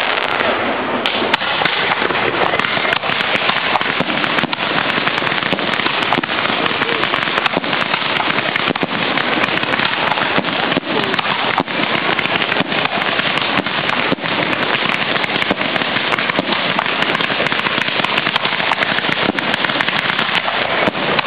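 Fireworks crackle and fizz in a dense, steady roar.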